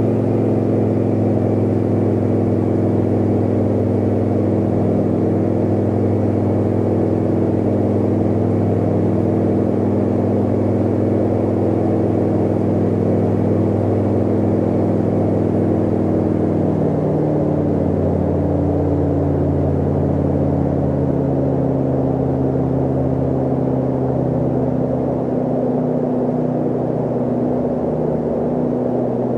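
A small plane's propeller engine drones steadily, shifting slightly in pitch.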